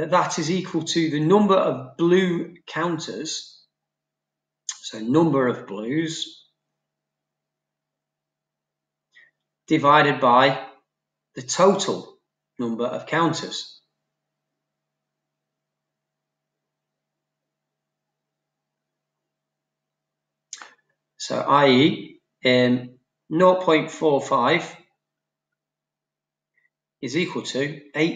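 A middle-aged man explains calmly into a close microphone, with pauses.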